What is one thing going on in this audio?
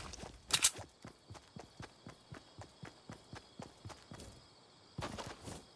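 Quick footsteps thud steadily on grass.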